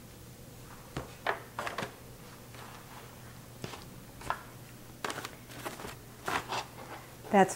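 Foil pans crinkle and clatter as they are handled.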